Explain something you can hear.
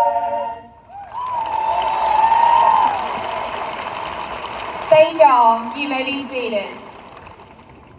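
A large crowd cheers and whistles in an open stadium.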